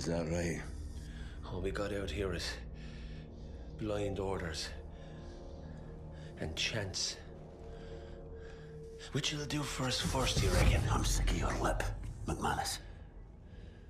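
A middle-aged man speaks in a low, gruff voice, close by.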